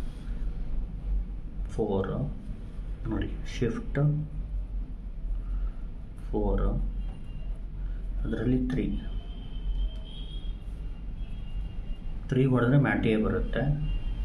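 Calculator buttons click softly as they are pressed.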